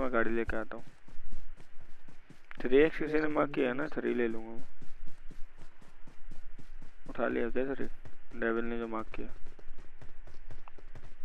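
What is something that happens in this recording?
Quick footsteps patter steadily on grass.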